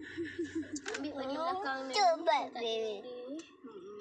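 A young girl speaks excitedly up close.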